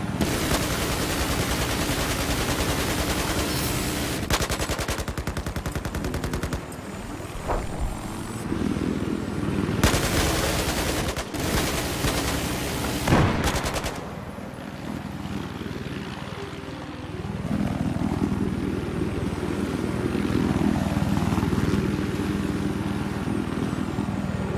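A helicopter's rotor thumps.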